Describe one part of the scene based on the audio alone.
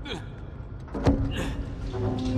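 A heavy thud lands on wood.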